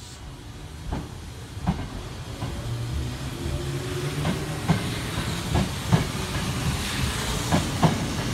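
Train wheels clatter over rail joints.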